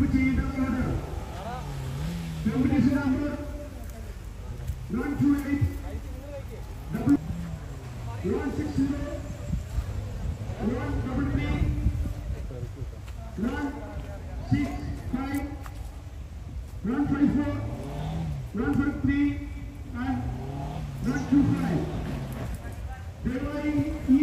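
An off-road vehicle's engine revs and roars as it climbs through mud.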